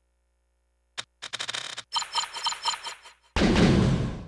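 Electronic score counters tick rapidly.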